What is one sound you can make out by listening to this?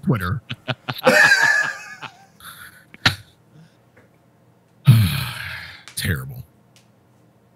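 Several men laugh loudly over an online call.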